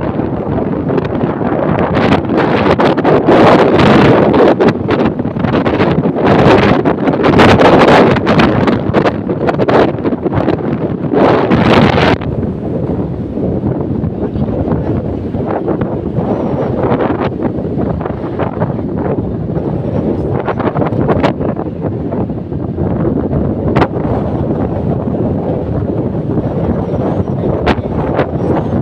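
Wind rushes and buffets loudly against a moving microphone outdoors.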